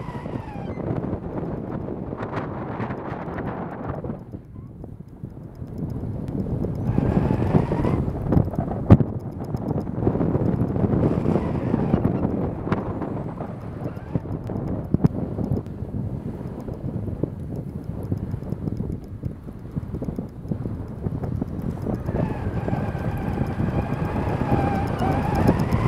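Tyres crunch and hiss over packed snow.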